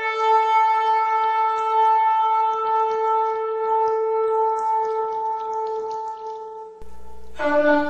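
A ram's horn blows a long, steady, blaring note.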